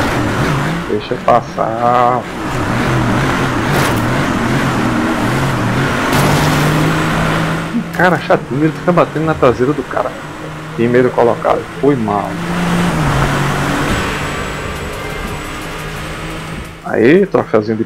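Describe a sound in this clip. A car engine roars at high revs as a race car speeds along.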